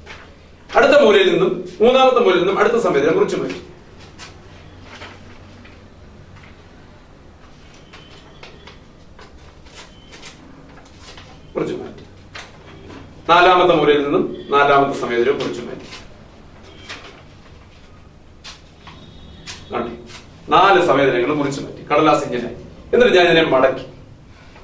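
A man speaks clearly and calmly nearby, in short bursts.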